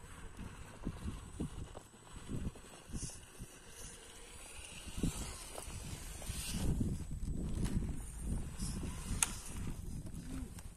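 Rubber tyres scrape and knock against rock.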